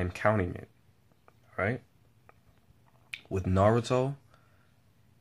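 A young man speaks calmly and close up, in short phrases.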